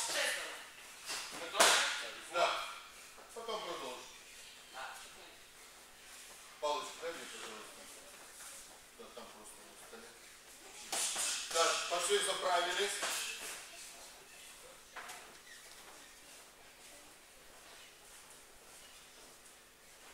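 Bare feet thud on a mat.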